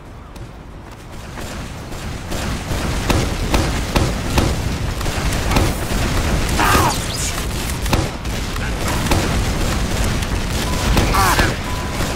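Gunfire and explosions crack and boom repeatedly.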